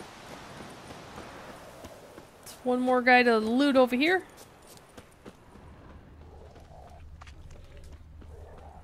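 Footsteps run across grass and mud.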